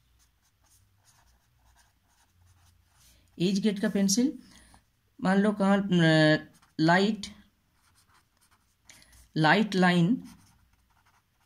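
A felt pen squeaks faintly on paper.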